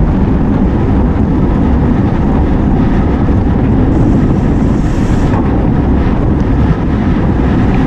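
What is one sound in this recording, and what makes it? Wind roars steadily over a microphone outdoors.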